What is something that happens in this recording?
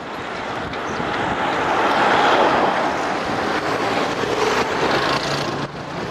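A van drives past close by on a road.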